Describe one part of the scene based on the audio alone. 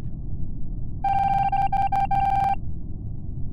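A bright steady game tone rings briefly.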